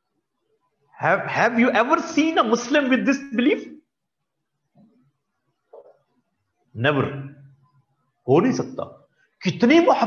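A man speaks calmly into a microphone, as if lecturing over an online call.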